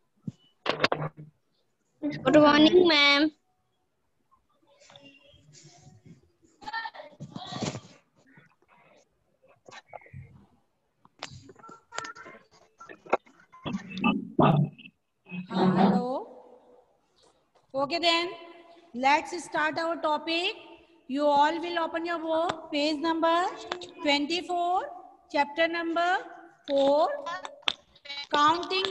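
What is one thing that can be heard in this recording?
A woman speaks into a headset microphone, teaching with animation.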